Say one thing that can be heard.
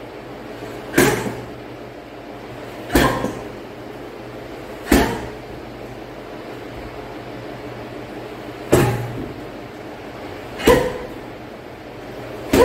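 Kicks thud heavily into a punching bag at a steady pace.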